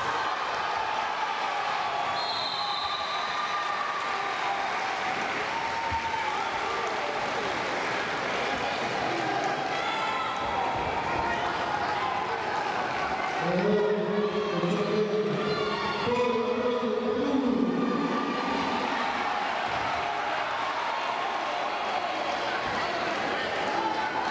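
A large indoor crowd murmurs and chatters in an echoing hall.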